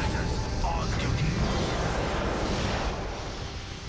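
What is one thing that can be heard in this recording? A heavy craft's engines roar as it sets down.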